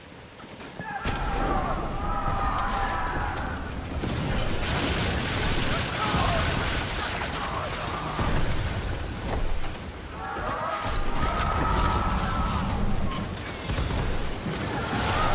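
Sea waves rush and splash against a ship.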